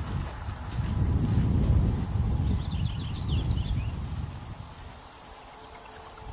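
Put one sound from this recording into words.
Footsteps crunch on dry leaves and twigs, moving away.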